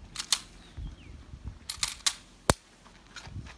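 Pistol shots crack loudly outdoors.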